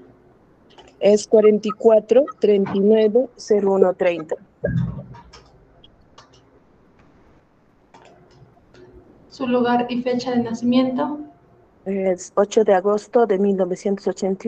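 Another woman speaks over an online call.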